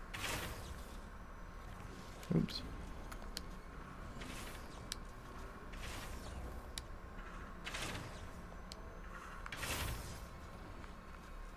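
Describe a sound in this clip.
A small remote-controlled vehicle's motor whirs steadily.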